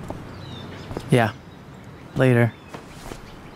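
A young man speaks briefly and calmly.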